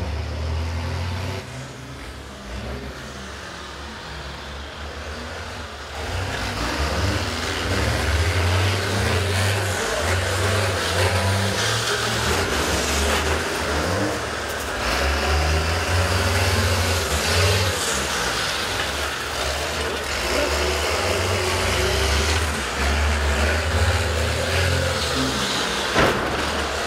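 Bus engines rumble and rev nearby.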